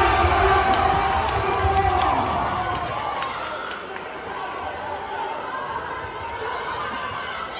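A crowd of spectators chatters and cheers loudly in a large echoing gym.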